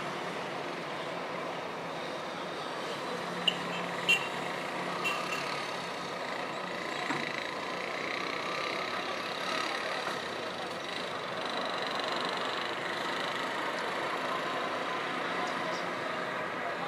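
Distant city traffic hums steadily.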